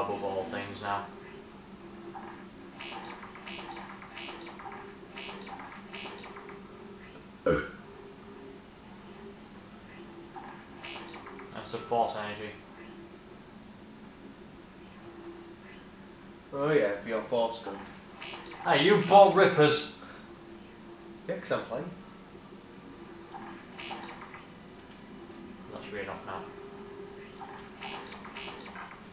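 Short electronic menu blips sound as selections change.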